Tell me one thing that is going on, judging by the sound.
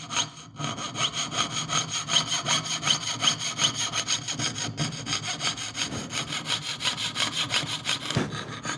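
A metal tool taps rapidly and steadily on a metal plate.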